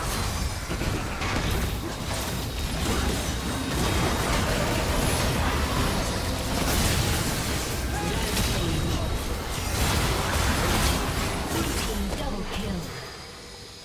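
Game spell effects burst, crackle and boom in a busy fight.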